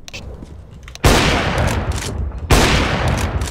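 A sniper rifle fires with a loud crack.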